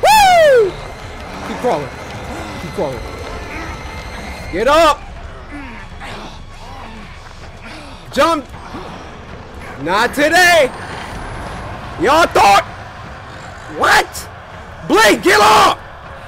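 A man speaks loudly and excitedly into a close microphone, with sudden loud outbursts.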